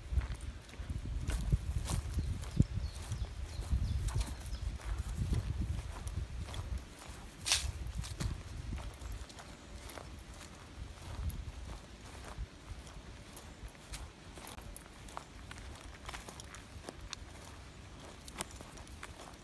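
A dog sniffs at the grass.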